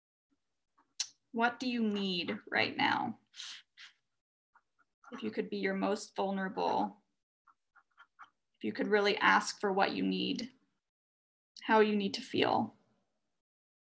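A young woman reads out calmly and softly over an online call, in short phrases.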